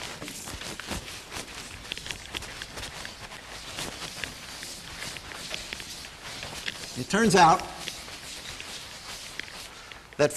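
A board eraser rubs across a chalkboard.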